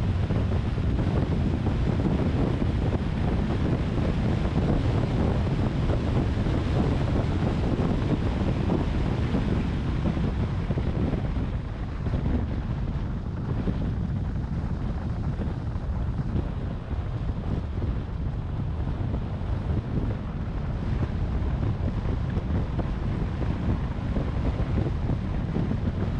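Tyres roll on asphalt.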